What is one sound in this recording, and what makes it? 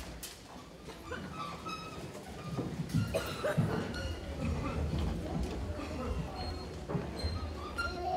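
A children's choir sings.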